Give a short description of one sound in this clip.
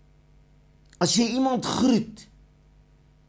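An elderly man speaks briefly and firmly into a close microphone.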